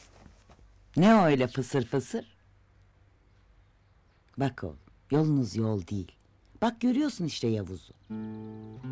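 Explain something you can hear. An elderly woman speaks softly close by.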